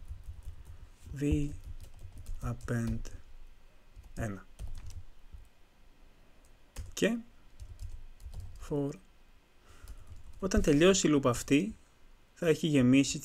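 A young man speaks calmly close to a microphone, explaining in short phrases.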